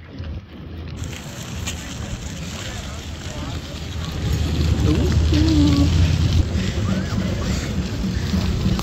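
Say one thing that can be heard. A crowd murmurs outdoors at a distance.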